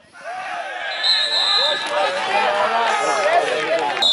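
Football players shout to each other outdoors.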